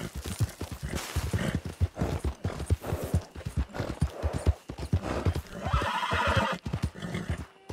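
Horse hooves thud rapidly on dry ground at a gallop.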